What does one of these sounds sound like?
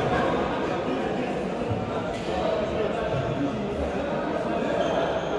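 Children shout and call out as they play in a large echoing hall.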